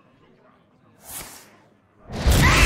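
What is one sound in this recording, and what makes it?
A short magical whoosh sounds.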